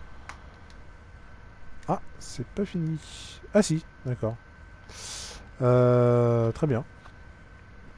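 Paper rustles as a page is handled.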